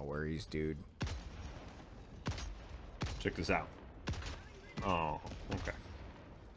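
Rifle shots crack one after another.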